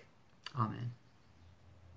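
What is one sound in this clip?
A man speaks a brief word close to a computer microphone.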